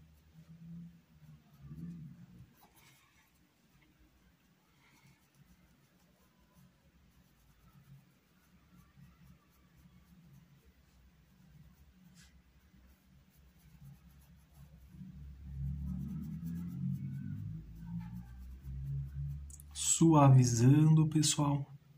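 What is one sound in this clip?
A paintbrush brushes softly across cloth.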